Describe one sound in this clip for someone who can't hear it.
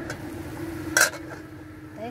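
A metal pot lid clinks as it is lifted.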